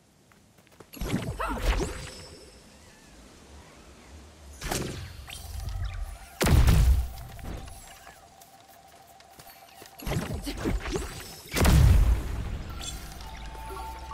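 Heavy magical blasts boom and crackle loudly several times.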